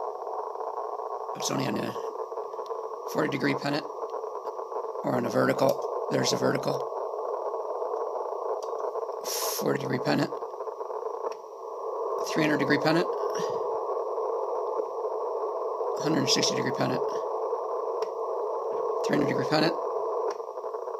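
A radio loudspeaker hums with steady static noise.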